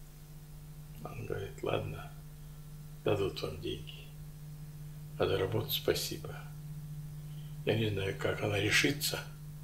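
An elderly man speaks calmly in short bursts, close by.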